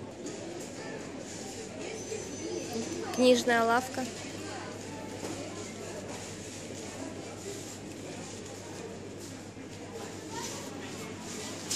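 People murmur faintly in a large echoing hall.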